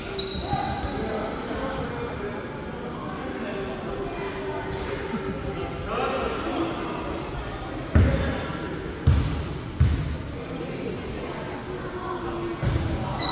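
Sneakers squeak on a wooden court in a large echoing hall.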